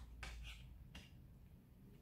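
A card is laid softly on a table.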